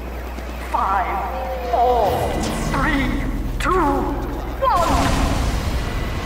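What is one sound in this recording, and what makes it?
A healing beam hums steadily from a medic gun.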